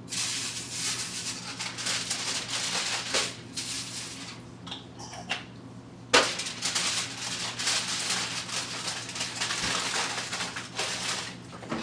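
Aluminium foil crinkles and rustles as it is handled.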